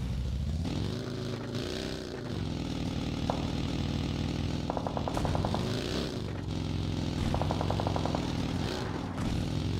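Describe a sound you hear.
A game buggy's engine revs and drones, rising and falling in pitch.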